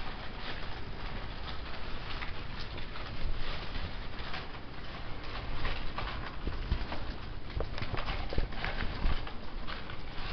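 Small animals scurry and rustle across crumpled cloth close by.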